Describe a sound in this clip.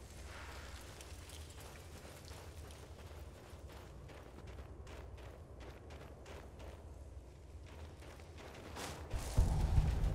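Footsteps crunch quickly on snow and ice.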